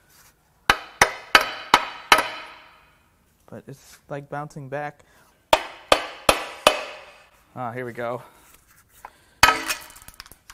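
A hammer strikes metal with sharp, ringing blows.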